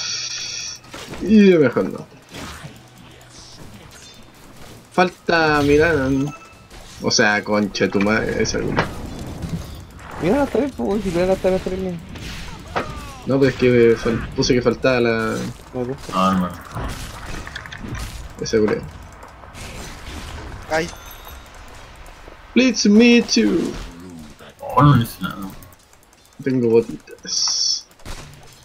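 Blows and spell blasts clash in a fast game fight.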